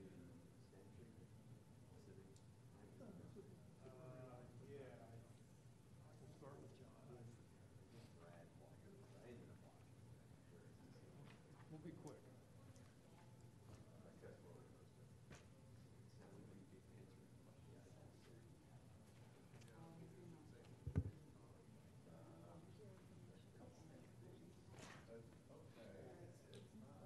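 Men talk quietly at a distance in a large, echoing room.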